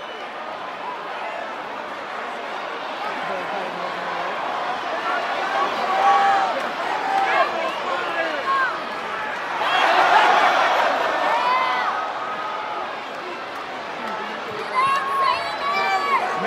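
Fans nearby shout and whoop loudly.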